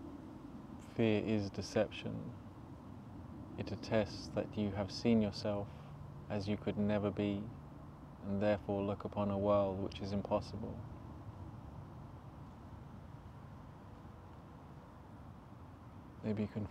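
A young man speaks calmly and close to a clip-on microphone.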